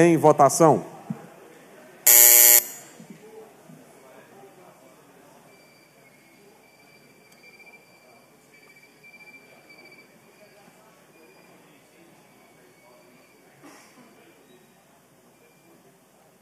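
Several men talk quietly in a large echoing hall.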